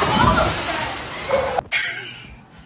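Water splashes loudly as a dog swims.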